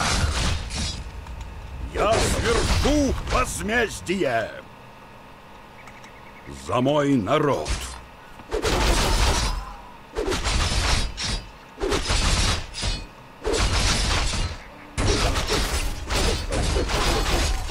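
Swords and weapons clash in a fierce battle.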